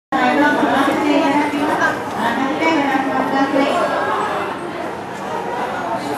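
A crowd of men, women and children chatters excitedly close by.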